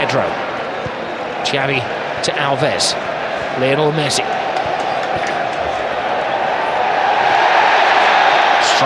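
A large stadium crowd roars steadily and swells louder toward the end.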